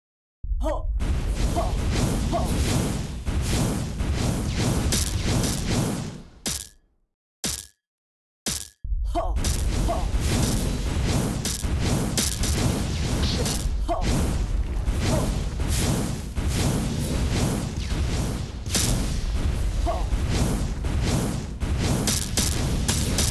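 Game explosions boom and crackle over and over.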